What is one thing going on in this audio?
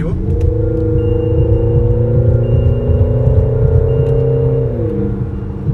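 Tyres rumble low on the road.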